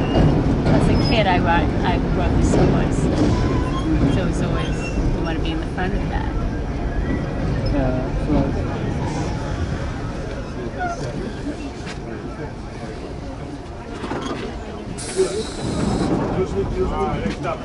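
Wheels squeal against the rails.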